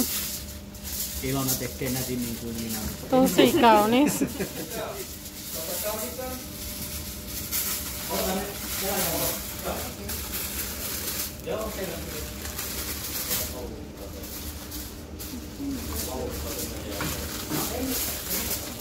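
Aluminium foil crinkles and rustles as hands fold and press it.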